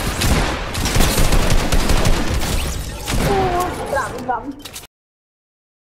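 Rapid gunfire crackles loudly.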